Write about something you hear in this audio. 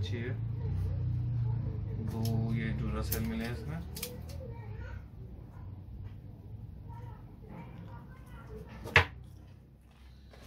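Plastic parts click and rattle in a man's hands.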